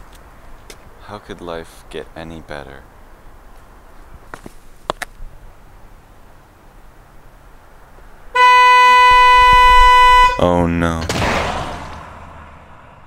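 A young man speaks calmly close by.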